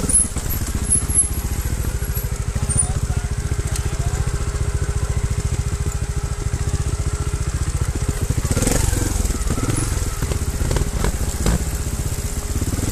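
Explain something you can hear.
A dirt bike engine chugs steadily at low revs close by.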